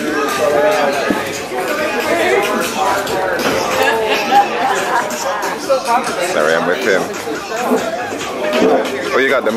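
A crowd of men and women chatters all around, close by.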